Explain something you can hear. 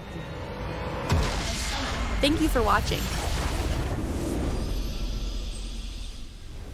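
A base explodes with a deep rumbling blast.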